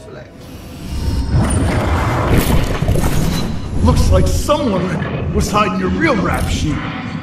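A gruff man speaks forcefully.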